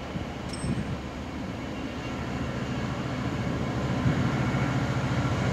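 A diesel locomotive rumbles closer, its engine growing louder.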